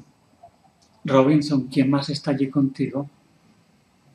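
A middle-aged man speaks briefly and calmly, close by.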